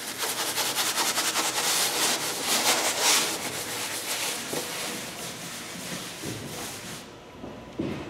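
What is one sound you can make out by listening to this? A sponge scrubs and rasps against a rough wall.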